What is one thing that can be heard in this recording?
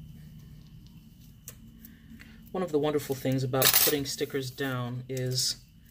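A sticker peels off its backing.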